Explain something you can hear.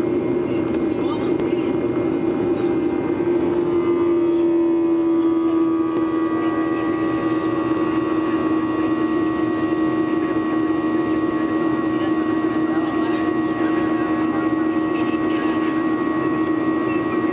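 A jet engine drones steadily from inside an airplane cabin, its whine shifting slightly in pitch.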